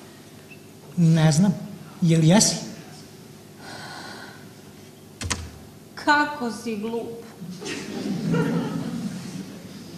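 A young man speaks, heard from a distance in a large echoing hall.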